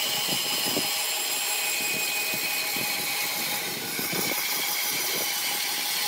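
A band saw cuts through a thick wooden plank.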